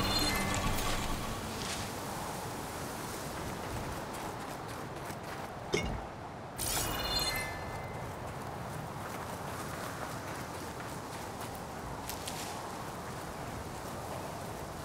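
A snowstorm's wind howls steadily.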